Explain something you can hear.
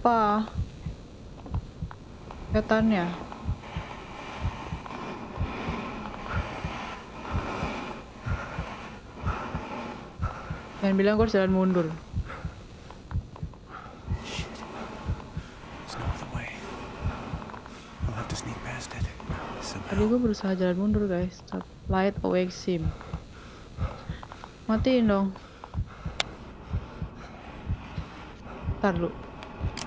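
A young woman talks in bursts close to a microphone, with animated exclamations.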